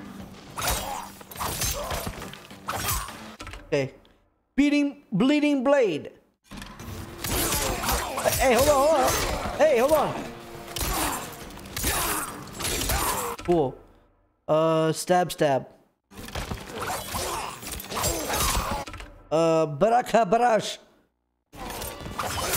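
Heavy blows and blade slashes thud and clang.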